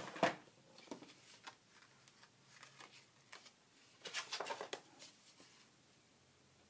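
Paper and thin card rustle as they are handled.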